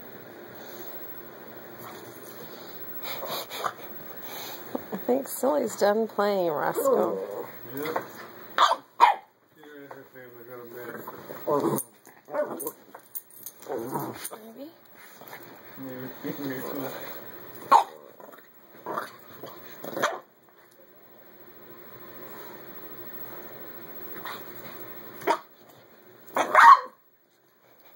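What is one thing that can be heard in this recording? Dogs scuffle and thump on a soft bed.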